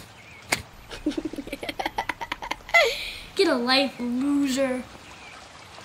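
A young boy talks and laughs excitedly close by.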